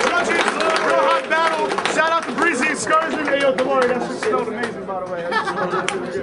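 A man raps forcefully over crowd noise.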